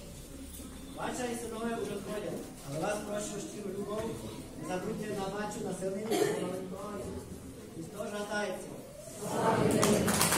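A man sings alone in a large echoing hall.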